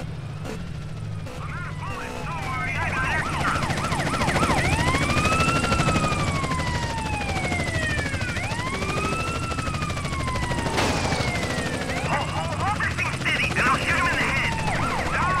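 A police car siren wails up and down.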